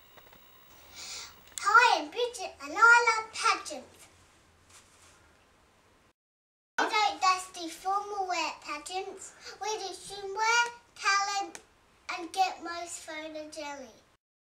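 A young girl talks cheerfully, close by.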